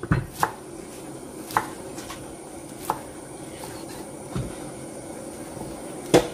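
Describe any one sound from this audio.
A knife chops through cabbage and knocks on a wooden board.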